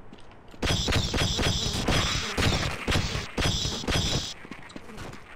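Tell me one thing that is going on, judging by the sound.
A weapon fires in rapid bursts with a buzzing crackle.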